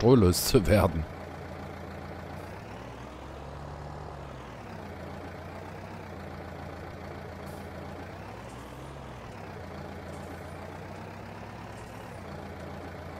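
A tractor engine idles with a low steady rumble and briefly revs up and down.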